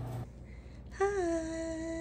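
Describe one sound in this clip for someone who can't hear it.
A television plays a short musical chime.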